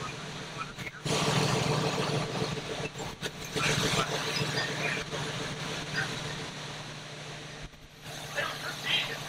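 Firefighters clatter about with heavy gear on a wooden porch.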